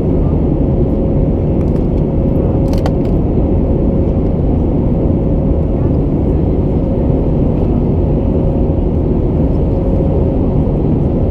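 A jet airliner's engines roar steadily in flight, heard from inside the cabin.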